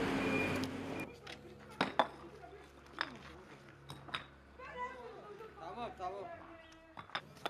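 Concrete paving stones clack as they are set down.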